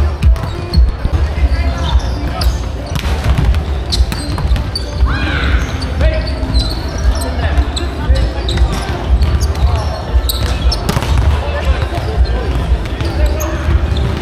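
A crowd of young people chatter and call out around the hall.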